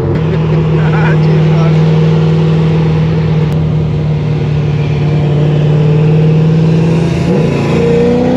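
A car engine idles with a steady hum.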